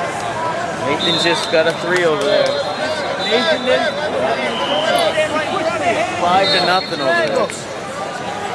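Young men talk with each other close by.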